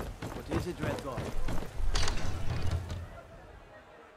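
A heavy wooden door opens.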